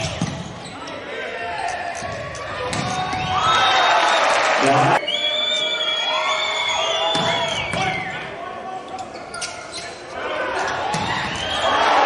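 A volleyball is struck with sharp, echoing smacks.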